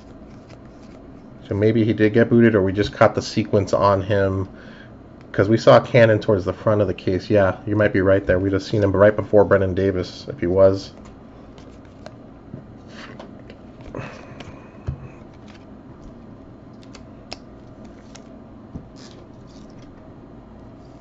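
Trading cards rustle and slide softly between fingers.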